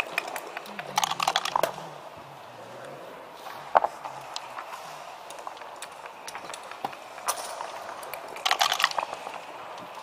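Dice rattle and clatter onto a wooden board.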